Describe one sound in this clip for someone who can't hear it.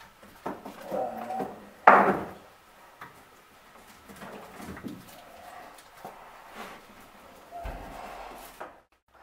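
Light knocks and scrapes come from hands working close by.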